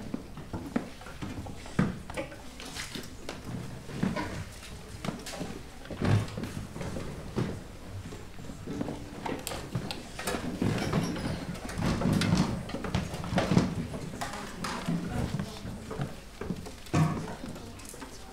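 Musicians shuffle and knock chairs and stands on a wooden stage in an echoing hall.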